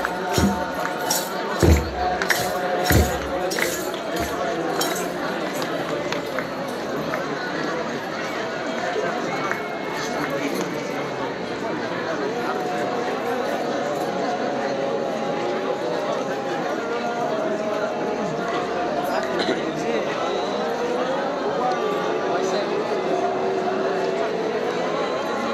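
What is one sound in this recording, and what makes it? A large crowd of men chants and sings together outdoors.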